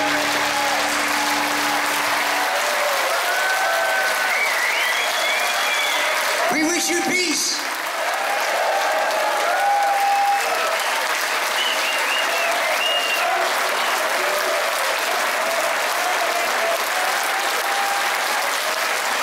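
A crowd of adults cheers and whoops.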